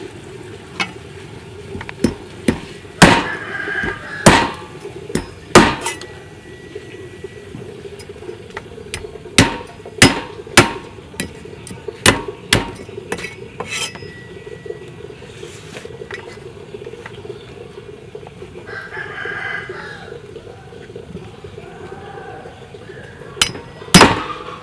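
A knife scrapes scales off a fish.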